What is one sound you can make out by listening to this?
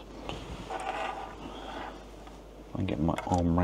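Hands handle cables with a soft rustle.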